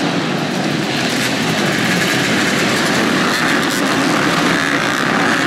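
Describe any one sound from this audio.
Motorcycle engines rev high as they pass close by.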